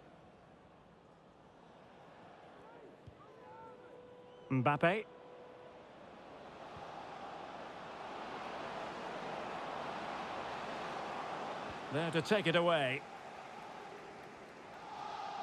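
A stadium crowd cheers steadily and slowly swells louder.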